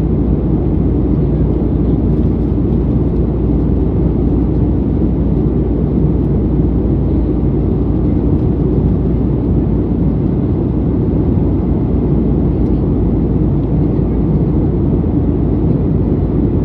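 Jet engines roar steadily from inside a plane cabin.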